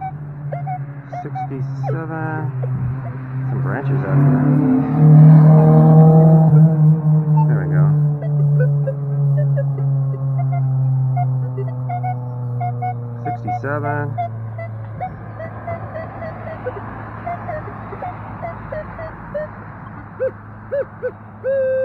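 A metal detector gives a steady humming tone.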